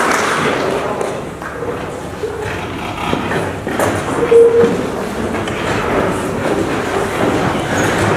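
Young men chatter and talk among themselves.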